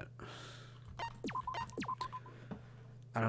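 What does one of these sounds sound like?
A game menu chimes and beeps softly.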